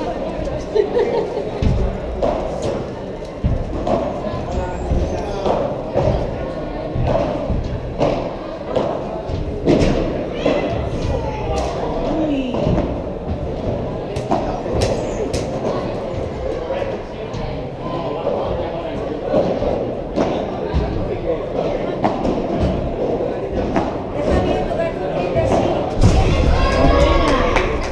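A ball bounces on the court and off the walls.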